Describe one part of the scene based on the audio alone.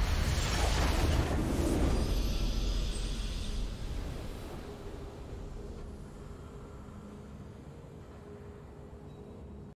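A video game victory fanfare plays.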